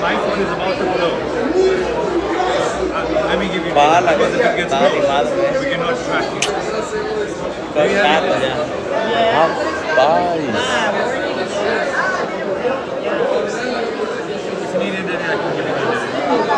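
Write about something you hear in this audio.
A crowd of people chatters and murmurs nearby.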